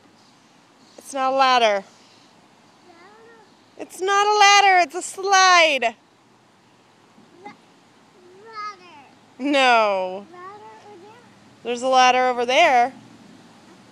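A toddler squeals and babbles close by.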